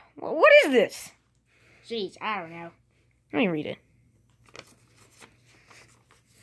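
Soft toys rustle against a blanket.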